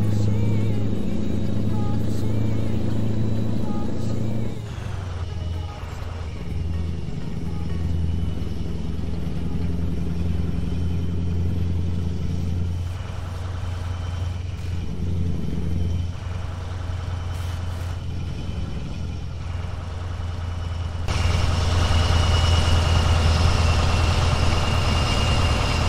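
A truck engine rumbles steadily as the truck drives along a road.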